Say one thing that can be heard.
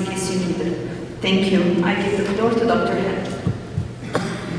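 A woman speaks into a microphone, heard through loudspeakers in a large room.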